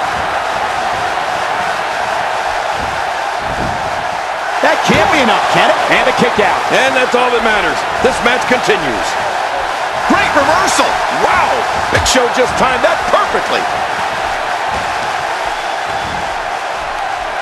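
A large crowd cheers steadily in a big echoing arena.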